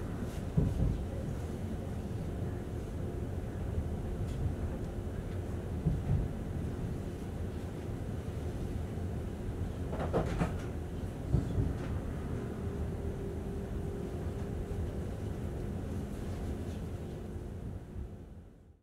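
A train rumbles steadily along the tracks from inside a carriage.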